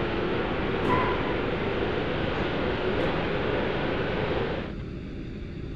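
A loud rushing roar of takeoff power fills the cockpit, then drops off.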